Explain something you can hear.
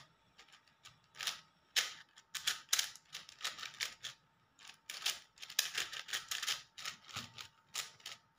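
Plastic cube layers click and clatter as they are turned quickly.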